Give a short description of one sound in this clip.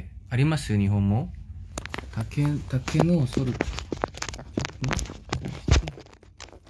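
A young man talks casually, close to a phone microphone.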